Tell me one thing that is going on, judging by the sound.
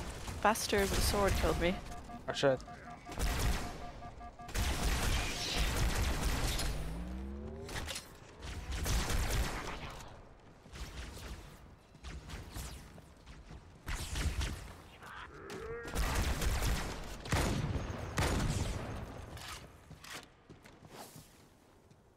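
Energy weapons fire in loud, rapid bursts.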